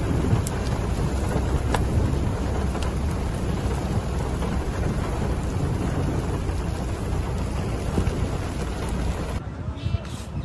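Wind buffets the microphone outdoors with a steady rumble.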